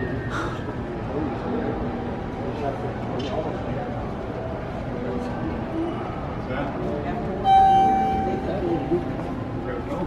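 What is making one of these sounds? A crowd murmurs in a large echoing space.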